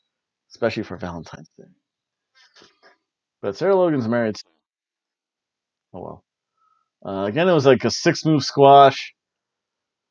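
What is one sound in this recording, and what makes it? A middle-aged man talks calmly and close to a microphone, in short bursts with pauses.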